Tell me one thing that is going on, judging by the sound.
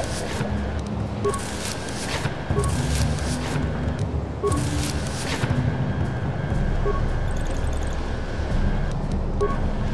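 A short electronic chime sounds as a menu opens.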